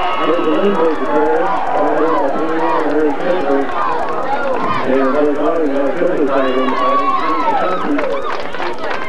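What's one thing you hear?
Young girls chant a cheer in unison nearby.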